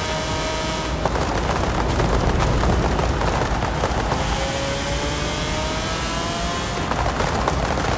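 A car engine roars and then drops off as the car slows, before revving up again.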